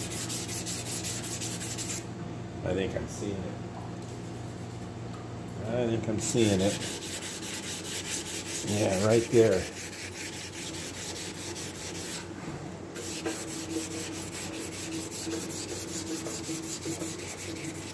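Sandpaper rubs back and forth rapidly on a metal surface.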